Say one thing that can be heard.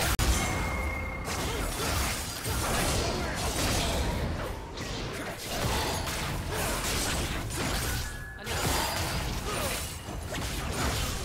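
Magic blasts, whooshes and clashing weapons sound in a busy battle.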